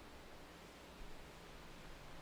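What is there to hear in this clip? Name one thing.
A metal cup is set down on a table with a soft knock.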